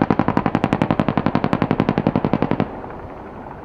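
A helicopter's rotor thumps rapidly overhead.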